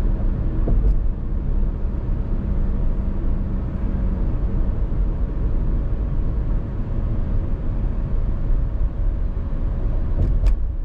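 A car drives along a highway with a steady low road rumble.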